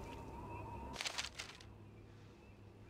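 Paper pages rustle as a book opens.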